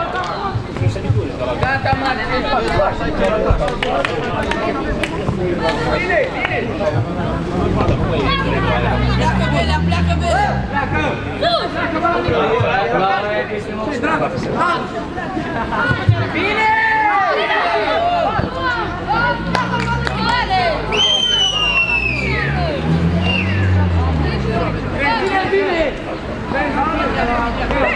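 A crowd of young men and women chatter and shout outdoors.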